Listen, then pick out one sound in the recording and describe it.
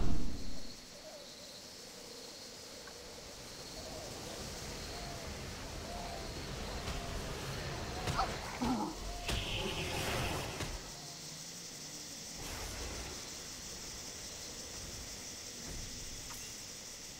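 Footsteps patter quickly on grass and stone.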